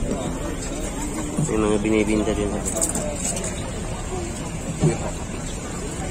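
Water laps gently against boats.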